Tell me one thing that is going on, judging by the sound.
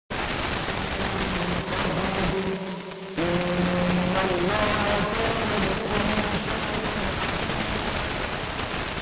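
A faint tone wavers through radio static and fades away.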